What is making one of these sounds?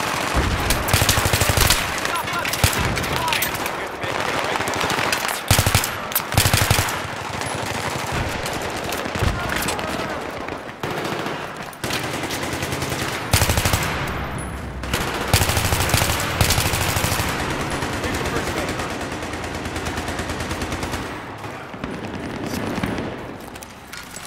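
Rifle fire rattles in rapid bursts.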